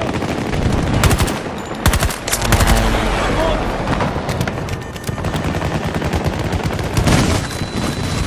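A rifle fires in short, loud bursts.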